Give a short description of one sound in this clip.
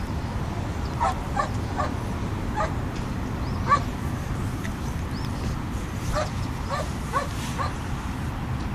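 A young woman calls out briefly to a dog, some distance away.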